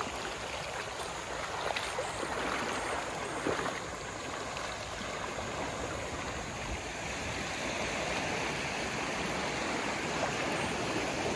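Shallow water laps and washes gently over rocks and sand.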